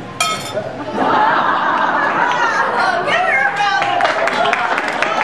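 A middle-aged woman sings loudly into a microphone.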